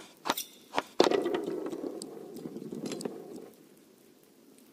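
A small ball rolls along a channel with a low rumble.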